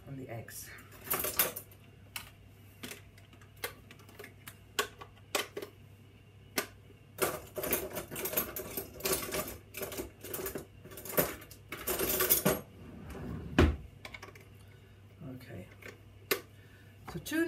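Metal beaters click and clatter against a hand mixer.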